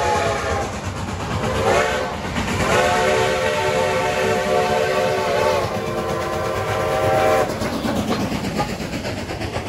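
A steam train rumbles and clanks past close by.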